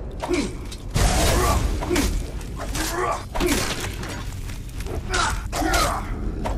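Heavy weapon blows land in a fight, echoing in a stone cave.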